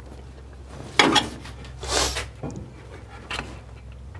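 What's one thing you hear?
Metal parts clank and rattle as hands work on an engine.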